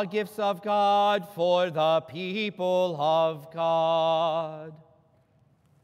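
A man chants in a steady, sung voice in an echoing hall.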